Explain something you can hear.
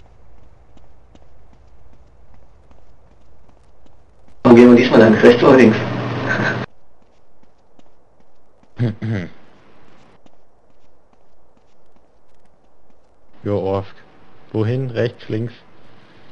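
Footsteps thud quickly on stone steps.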